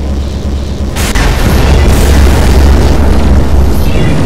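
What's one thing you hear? Loud explosions boom and crackle.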